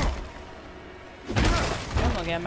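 A heavy punch lands with a dull thud.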